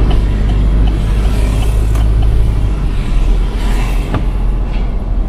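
A vehicle engine rumbles steadily while driving along a street.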